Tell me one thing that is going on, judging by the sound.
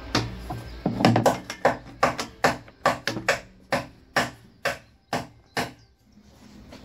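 Plastic latches snap shut on a drum.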